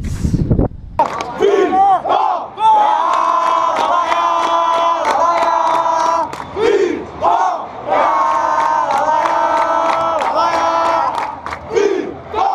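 A stadium crowd sings and chants loudly.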